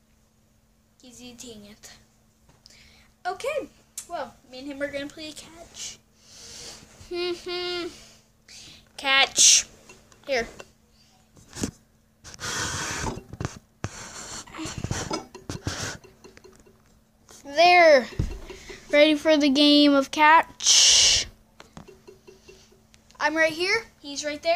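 A boy talks with animation close to the microphone.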